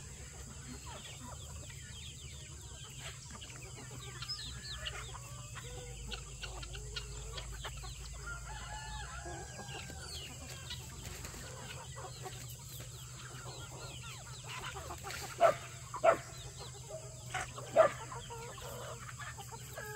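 A large flock of chickens clucks and chirps softly outdoors.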